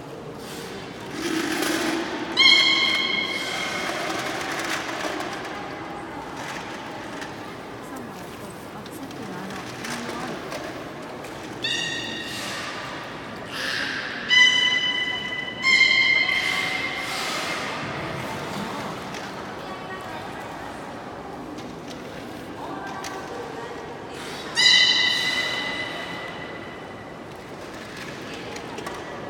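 Water laps and splashes softly.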